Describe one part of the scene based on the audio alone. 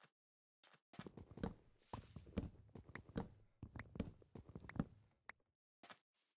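Leaves rustle and crunch in quick repeated bursts.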